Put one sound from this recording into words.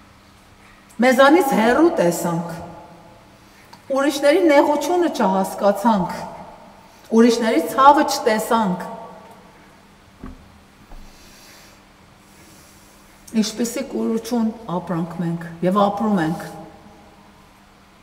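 An elderly woman speaks with animation into a close microphone, in bursts with pauses.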